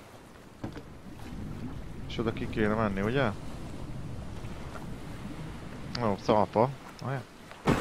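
A paddle splashes through water.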